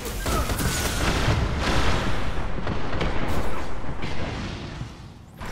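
A rifle fires rapid, loud bursts of shots.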